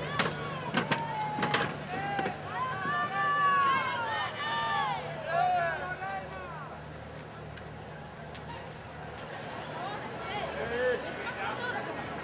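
Men talk and shout excitedly close by.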